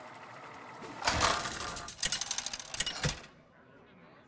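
A loud whoosh and clatter sound as the spinning stops.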